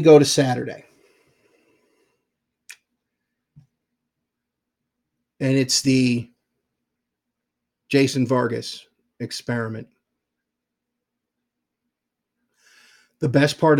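A man speaks calmly in short phrases close to a microphone, with pauses between them.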